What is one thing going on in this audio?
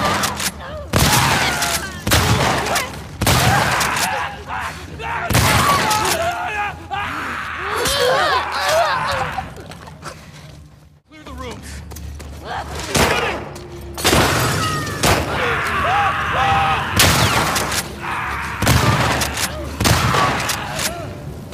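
Shotgun blasts boom loudly, again and again.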